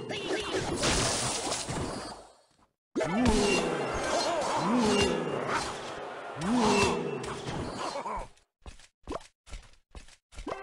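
Small battle sounds of thuds and clashes play in a mobile game.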